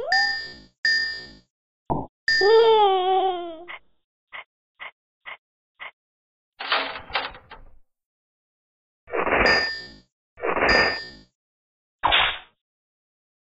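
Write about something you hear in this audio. Short cartoon game sound effects chime and whoosh in bursts.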